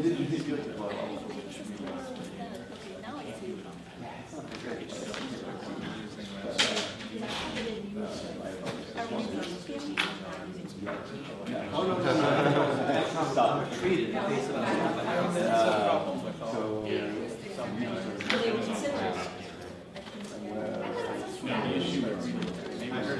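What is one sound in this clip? Several men and women chat at once in a large room with a slight echo.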